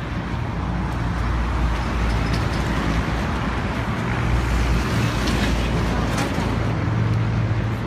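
A heavy truck rumbles by close at hand.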